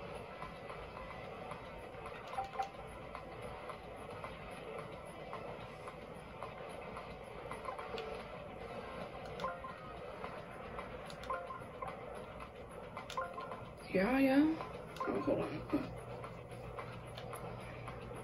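Short video game sound effects blip from a television speaker.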